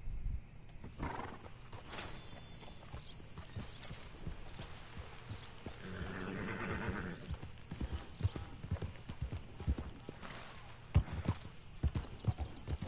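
Horse hooves thud steadily on the ground.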